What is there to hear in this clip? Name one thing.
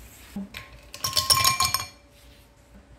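Ice cubes clatter and rattle into a glass.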